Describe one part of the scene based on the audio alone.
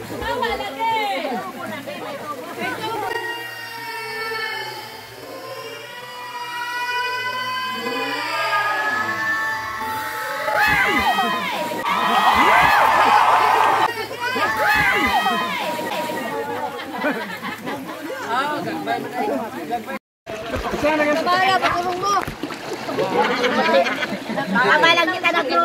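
Children and adults shout and laugh with animation close by, outdoors.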